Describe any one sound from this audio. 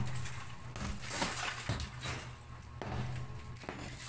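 Broken chunks of concrete crumble and fall.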